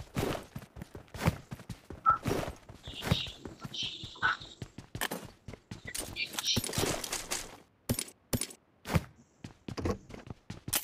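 A young woman talks with animation.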